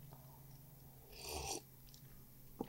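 A young man sips a drink.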